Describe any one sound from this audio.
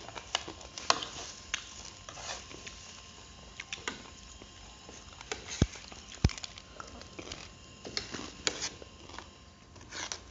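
Forks and spoons clink against ceramic plates.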